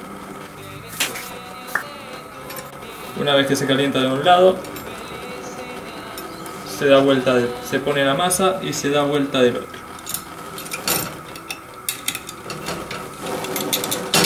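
A metal waffle iron clanks as it is opened and shut.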